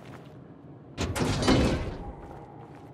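A metal locker door creaks open.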